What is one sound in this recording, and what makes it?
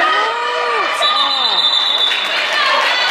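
A referee blows a short whistle blast.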